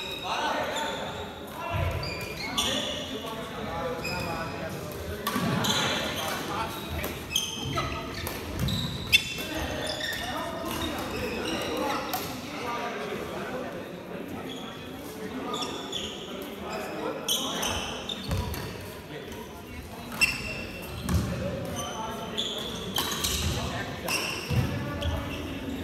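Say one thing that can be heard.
Men call out and talk loudly across an echoing hall.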